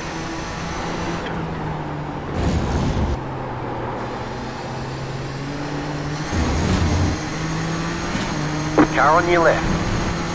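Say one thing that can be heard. A race car engine drones steadily, shifting pitch through gears.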